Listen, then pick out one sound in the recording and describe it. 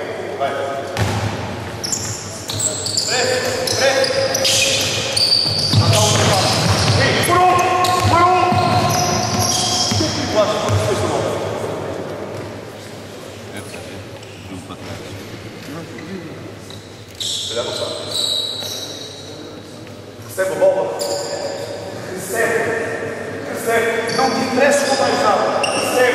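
Sneakers squeak on a wooden court in an echoing hall.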